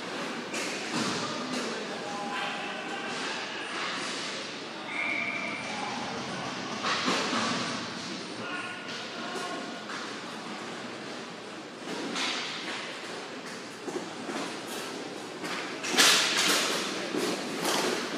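Players shout to each other across an echoing rink.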